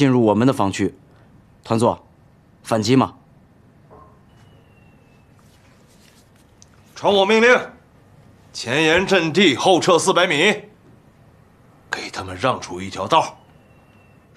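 A man speaks firmly and commandingly, close by.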